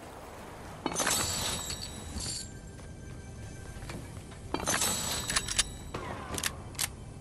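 Short bright chimes ring as items are picked up.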